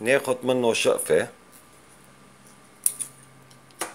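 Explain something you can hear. Scissors snip a fishing line.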